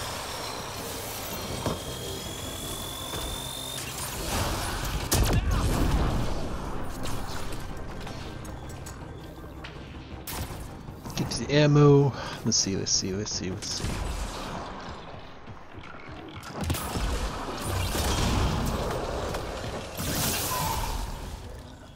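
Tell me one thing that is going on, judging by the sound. Energy blasts explode with a loud whoosh.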